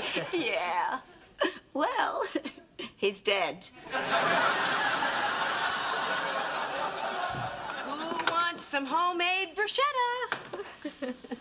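A woman speaks cheerfully and warmly.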